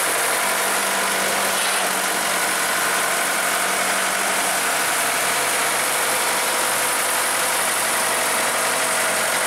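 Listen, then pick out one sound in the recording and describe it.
A tractor engine runs with a steady, low rumble close by.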